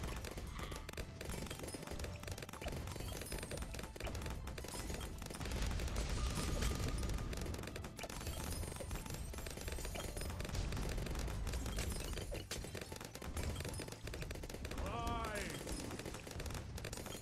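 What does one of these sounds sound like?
Cartoon balloons pop rapidly, with quick game sound effects.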